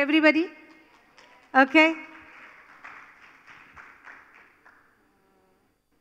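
An older woman speaks calmly into a microphone in a reverberant hall.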